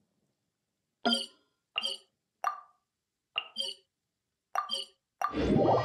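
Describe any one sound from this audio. Soft menu clicks chime several times.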